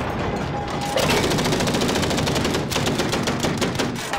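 Rapid gunfire crackles in quick bursts.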